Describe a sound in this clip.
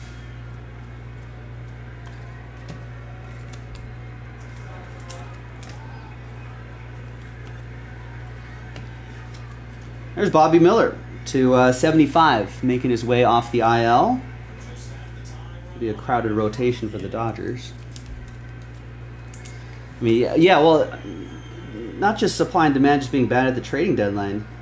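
Trading cards rustle and slide as they are shuffled by hand.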